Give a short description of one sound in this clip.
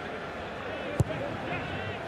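A boot kicks a ball with a sharp thump.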